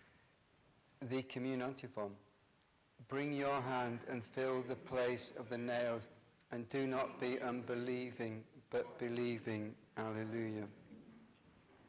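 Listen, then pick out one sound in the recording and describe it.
An elderly man chants or speaks slowly and steadily into a microphone, with a slight echo of a large hall.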